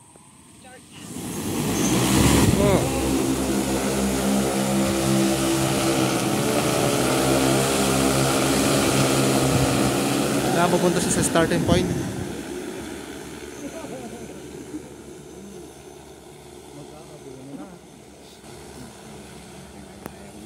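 A drone's propellers spin up and whir loudly, then fade as the drone flies away.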